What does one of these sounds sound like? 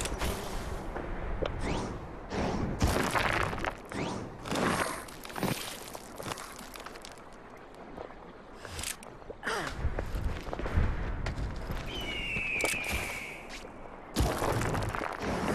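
A magical whoosh shimmers and swells.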